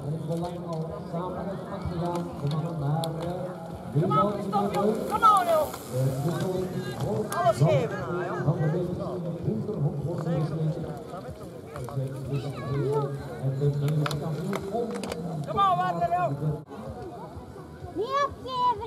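A group of men and women nearby shout and cheer loudly outdoors.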